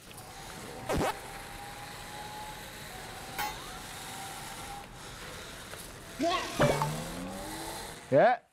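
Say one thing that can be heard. A small toy car's electric motor whirs.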